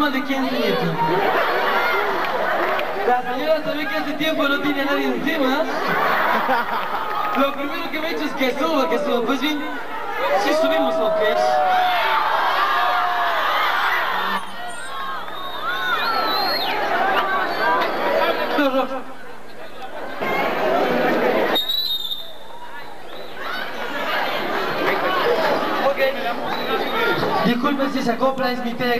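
A young woman sings into a microphone through loudspeakers, with an echo.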